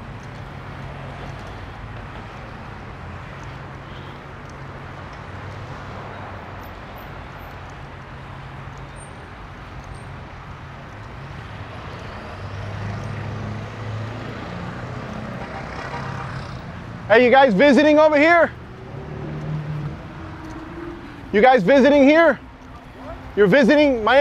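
Traffic hums steadily on a nearby street outdoors.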